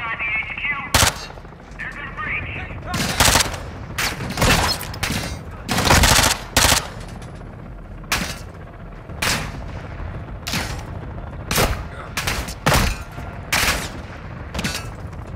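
A rifle fires loud bursts of shots that ring out in a large echoing hall.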